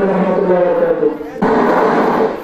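A young man sings into a microphone.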